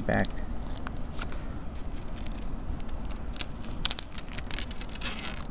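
Plastic film crinkles and rustles as it is peeled away.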